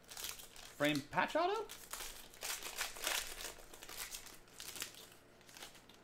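Foil wrappers crinkle and rustle as hands tear them open.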